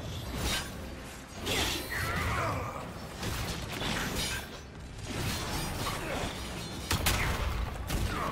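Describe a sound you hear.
Weapons clash and spells burst in a fantasy battle.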